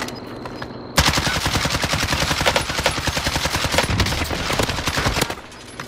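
A rifle fires in a fast, loud burst of shots.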